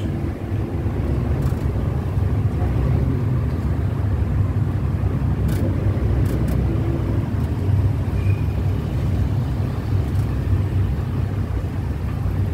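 Low, steady traffic rumble fills a busy street outdoors.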